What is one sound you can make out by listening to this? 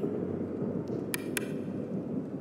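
A button clicks as a finger presses it.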